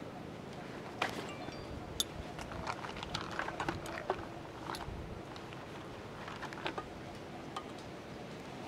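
Metal clinks and scrapes as hands handle a pan on a small grill.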